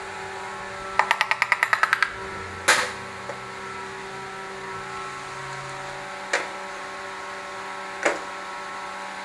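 Small metal parts clink and rattle in hands.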